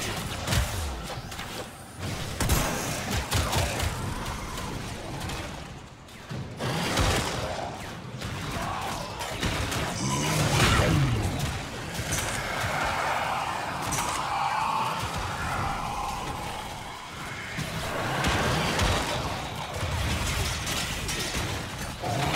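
Guns fire in rapid bursts with sharp impacts.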